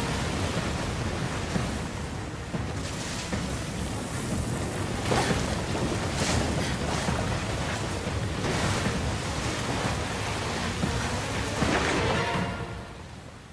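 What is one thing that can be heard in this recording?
Sand rushes and hisses as it slides down a slope.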